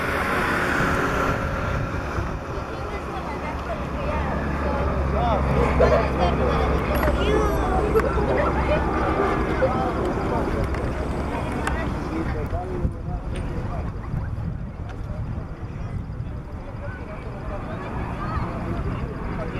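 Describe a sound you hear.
A light propeller plane's engine drones overhead, growing louder and then fading.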